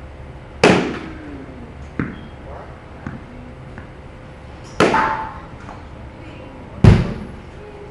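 A bat cracks sharply against a ball, ringing through a large echoing hall.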